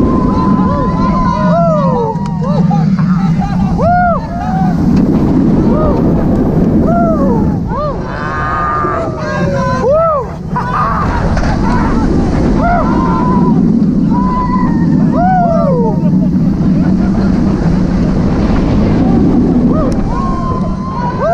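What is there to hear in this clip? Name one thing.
Riders scream and shriek with excitement.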